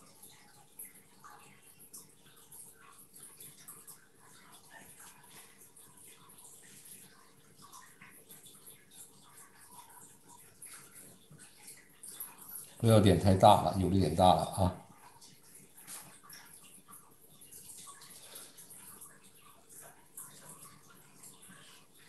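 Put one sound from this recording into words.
A brush dabs softly on paper.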